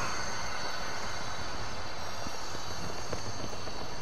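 A glowing magic orb crackles and hums.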